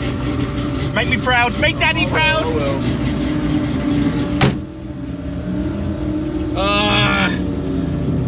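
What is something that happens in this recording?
A man talks close by, cheerfully.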